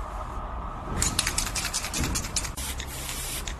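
A spray can rattles as it is shaken.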